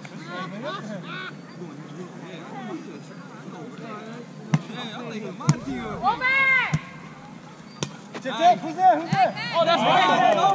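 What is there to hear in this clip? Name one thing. Young men and women shout and call out to each other outdoors.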